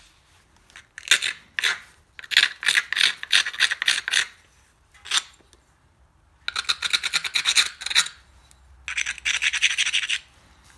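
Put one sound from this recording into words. A stone edge scrapes and rasps hard against a rough abrasive in quick bursts.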